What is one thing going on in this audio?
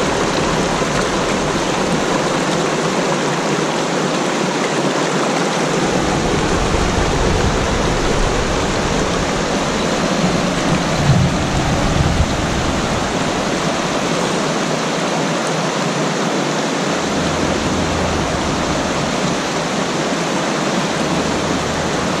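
A shallow river rushes and splashes steadily over rocks, close by.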